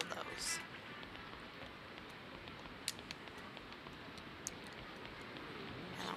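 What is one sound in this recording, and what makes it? Footsteps tap on pavement at a brisk pace.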